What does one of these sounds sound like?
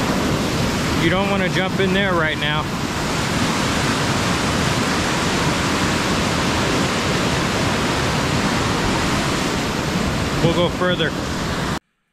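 A man speaks up close to a microphone, outdoors.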